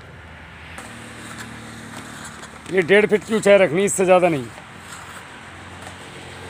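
A shovel scrapes and digs into loose soil.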